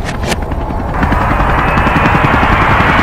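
Helicopter rotors whir loudly overhead.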